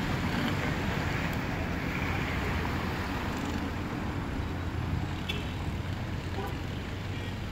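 Car engines hum and tyres roll past on a street nearby.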